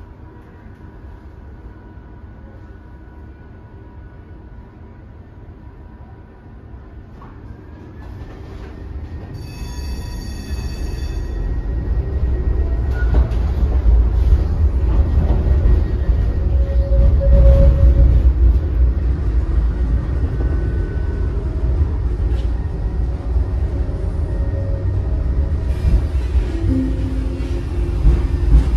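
A tram hums steadily as it rolls along, growing louder as it picks up speed.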